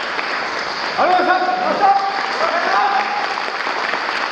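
A group of young performers calls out together in an echoing hall.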